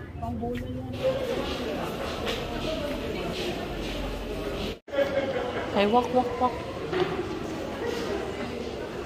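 A young girl talks and giggles close by.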